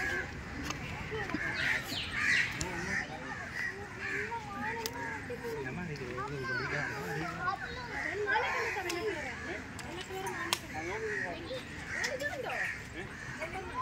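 Men, women and children chatter outdoors at a short distance.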